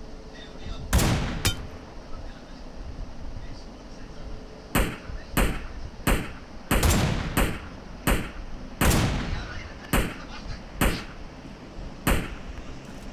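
Rifle shots crack one after another.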